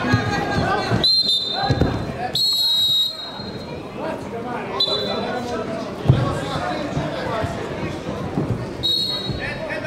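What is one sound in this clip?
Shoes squeak sharply on a wrestling mat.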